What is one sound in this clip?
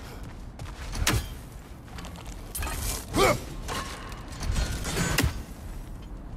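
Hands grip and scrape against rock while climbing.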